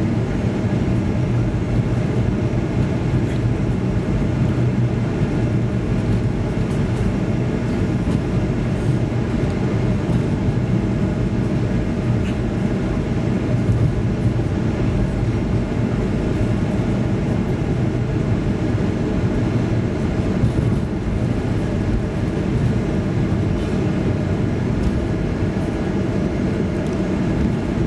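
Jet engines hum and rumble steadily, heard from inside an aircraft as it taxis.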